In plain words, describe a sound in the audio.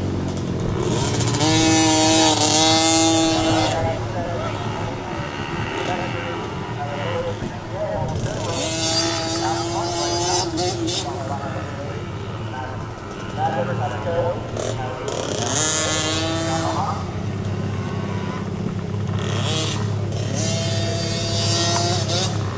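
A small dirt bike engine whines and revs up and down.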